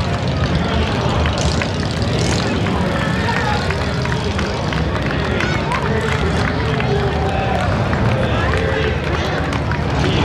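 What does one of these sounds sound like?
A crowd of men, women and children chatters and calls out along an outdoor street.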